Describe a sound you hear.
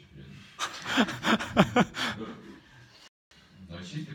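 A group of people laugh together in a room.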